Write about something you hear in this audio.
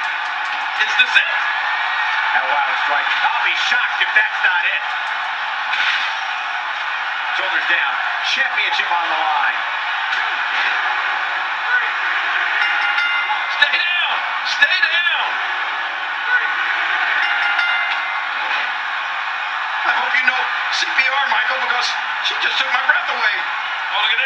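Blows and body slams thud through a television speaker.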